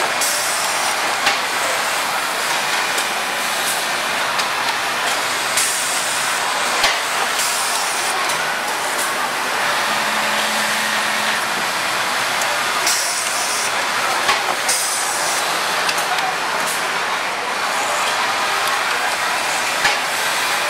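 An automated machine whirs and hisses steadily.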